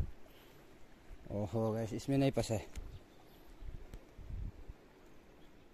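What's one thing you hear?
A river flows gently nearby.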